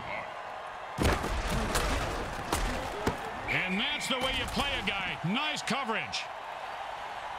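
Armoured players crash into each other with heavy thuds.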